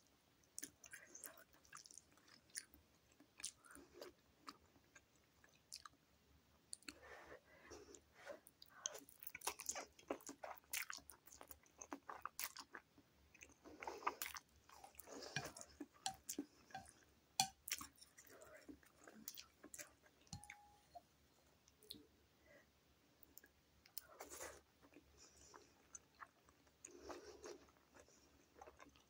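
A woman chews food with wet, smacking sounds up close.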